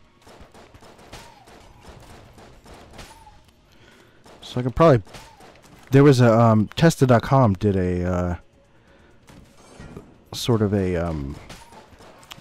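Small gunshots pop rapidly.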